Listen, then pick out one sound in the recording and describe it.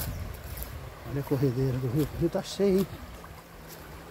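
A river rushes nearby.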